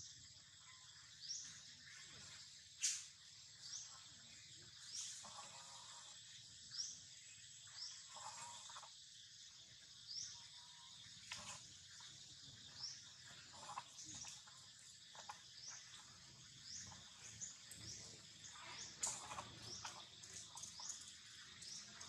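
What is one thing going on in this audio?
A monkey tears and squishes soft fruit.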